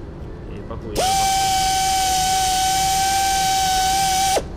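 A stiff brush scrapes against a spinning polishing pad with a steady high whine.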